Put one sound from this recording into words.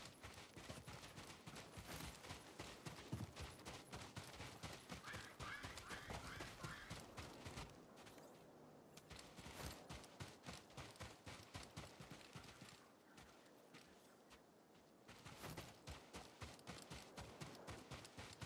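Footsteps crunch quickly on sand.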